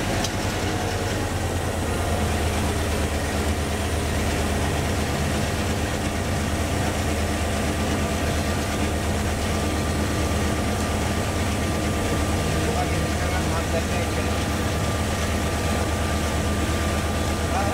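A locomotive engine throbs with a steady low drone.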